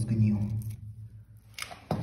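Fingers crumble and scrape dry grit on a hard floor.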